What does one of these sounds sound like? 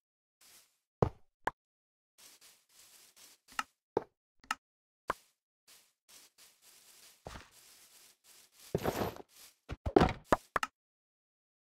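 A game block breaks with a short crunching burst.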